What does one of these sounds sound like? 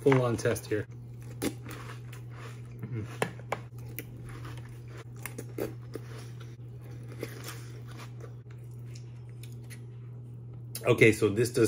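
A man chews food with his mouth close to a microphone.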